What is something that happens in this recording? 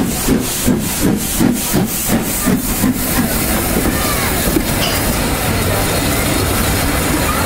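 Steam hisses loudly.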